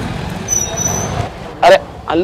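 A motorbike engine idles nearby.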